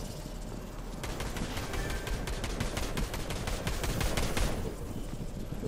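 Quick footsteps clang up metal stairs.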